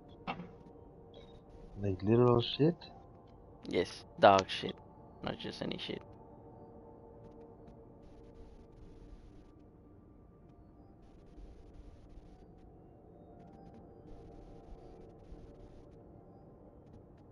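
Spacecraft engines hum steadily.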